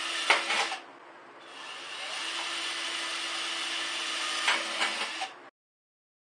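A metal can clanks and rattles against the drill.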